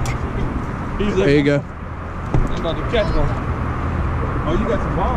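A man speaks excitedly close by, outdoors.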